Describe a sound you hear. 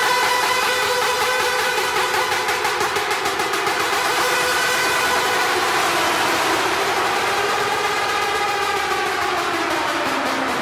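Loud electronic dance music plays through a sound system, with a steady pulsing beat.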